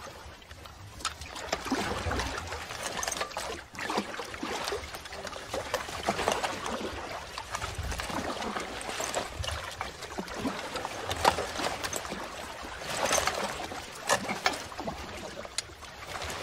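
Paddles splash in river water.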